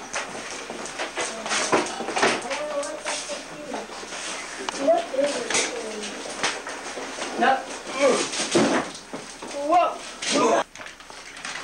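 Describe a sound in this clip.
Several people talk with animation close by, their voices overlapping.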